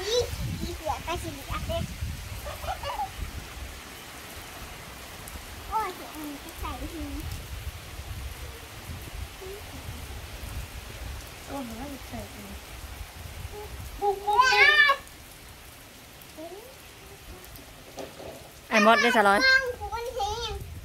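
A young girl talks nearby in a high voice.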